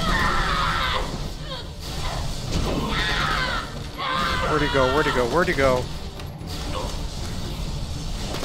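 Electric lightning crackles and buzzes.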